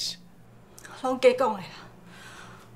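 A woman speaks briefly in surprise, close by.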